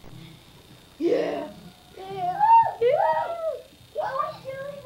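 Young children shout and chatter excitedly.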